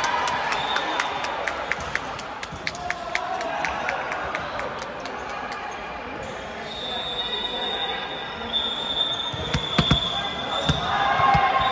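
Young women chatter in the distance across an echoing hall.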